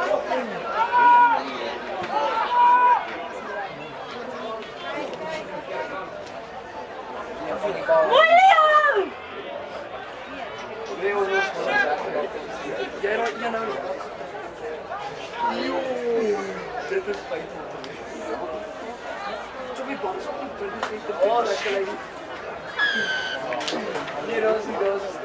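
Young men shout and call out loudly across an open field.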